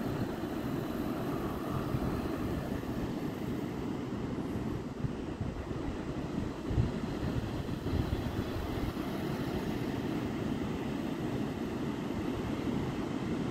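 Waves break and wash onto a beach in the distance.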